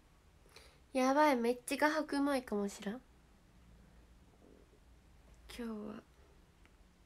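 A young woman speaks softly and cheerfully close to a microphone.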